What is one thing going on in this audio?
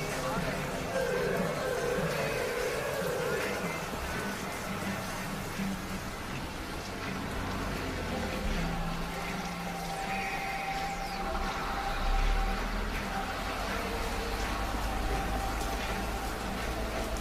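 A distant city drones steadily.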